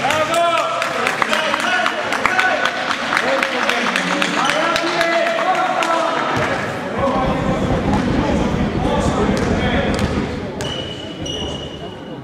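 Voices of players and spectators echo in a large hall.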